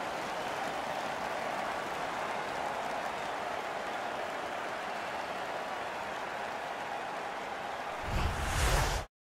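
A large crowd cheers and roars loudly in an arena.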